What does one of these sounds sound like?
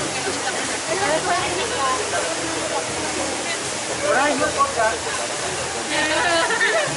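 A crowd of men and women talks and murmurs nearby outdoors.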